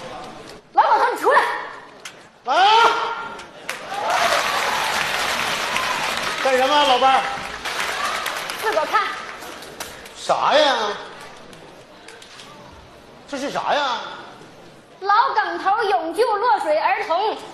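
A middle-aged man calls out loudly on a stage through a microphone.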